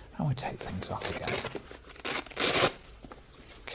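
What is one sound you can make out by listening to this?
A blood pressure cuff's fastener rips open.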